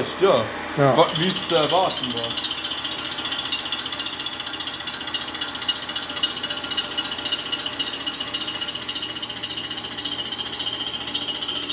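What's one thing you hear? A grinder grinds metal with a steady high, rough whine.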